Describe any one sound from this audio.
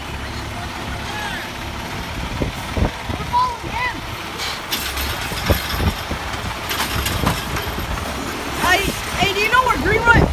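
Hydraulics on a garbage truck squeal in rising and falling whines.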